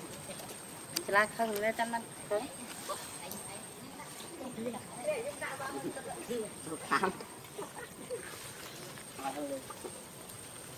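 Young monkeys squeal and chirp softly nearby.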